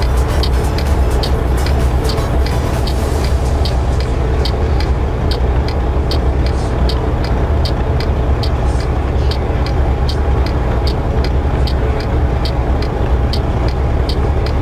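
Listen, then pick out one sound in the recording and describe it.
A truck's diesel engine rumbles steadily at low speed.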